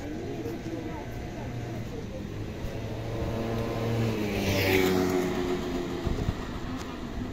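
A motorbike engine hums and passes close by, then fades.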